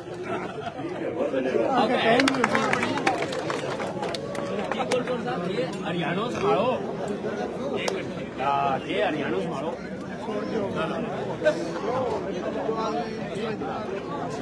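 A crowd of men talks and shouts all at once outdoors.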